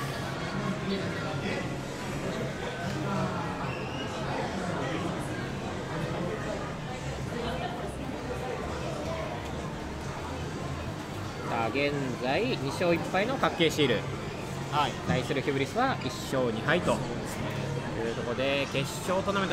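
Young men and women talk and shout excitedly nearby.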